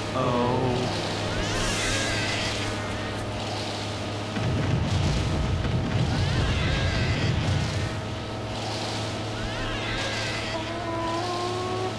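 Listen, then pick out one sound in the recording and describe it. Large birds squawk and screech loudly.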